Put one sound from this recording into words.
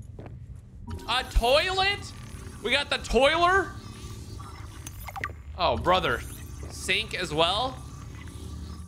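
A young man speaks animatedly into a close microphone.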